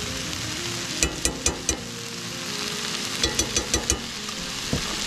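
A spice shaker taps against a pan.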